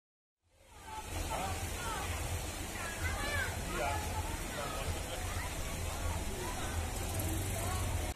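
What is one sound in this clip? Children chatter and call out close by outdoors.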